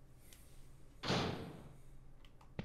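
A heavy metal door swings open.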